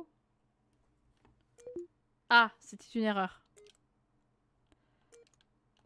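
An electronic keypad beeps as its buttons are pressed.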